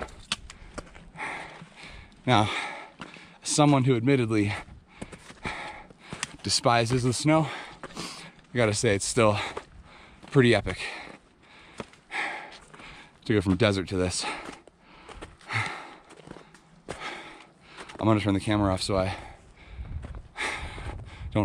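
Footsteps crunch over stones and snow.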